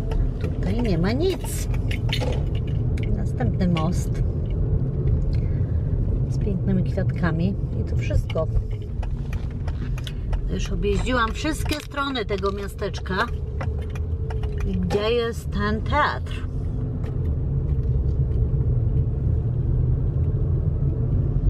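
A car engine hums and tyres rumble on the road, heard from inside the car.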